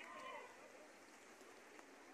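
Pigeons flap their wings as they fly up overhead.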